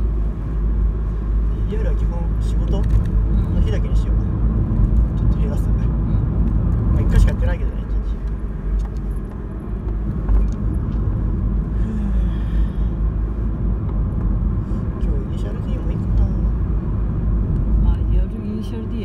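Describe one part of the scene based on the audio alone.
A car's engine hums from inside the cabin as it climbs a winding road.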